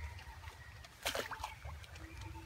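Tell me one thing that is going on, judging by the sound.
A melon splashes into water nearby.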